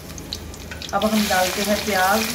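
Chopped onions tumble into a pan.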